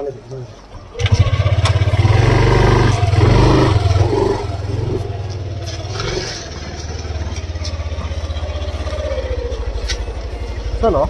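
A scooter engine starts and idles with a steady low putter.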